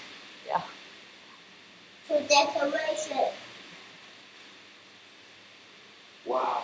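A young man speaks with animation into a headset microphone over an online call.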